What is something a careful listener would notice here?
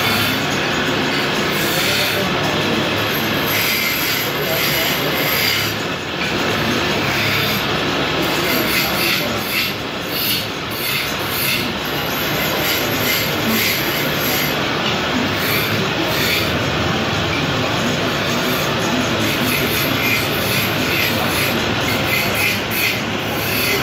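A wood lathe spins a timber blank.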